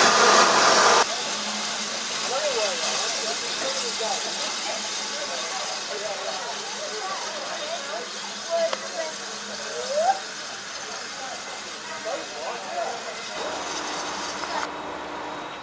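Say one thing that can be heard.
A steam locomotive puffs as it approaches slowly.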